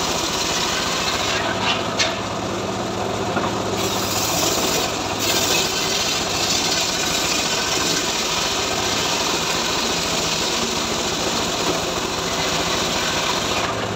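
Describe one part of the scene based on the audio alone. A saw whines as it cuts through a log.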